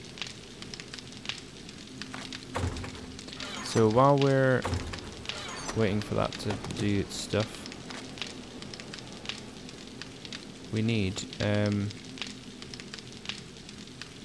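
Soft clicks sound as items are moved around a menu.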